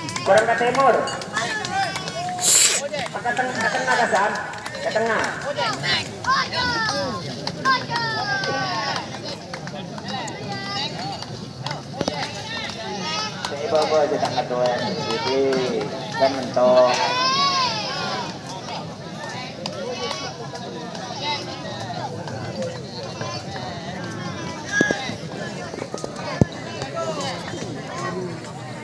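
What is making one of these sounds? A large crowd of men shouts and cheers outdoors.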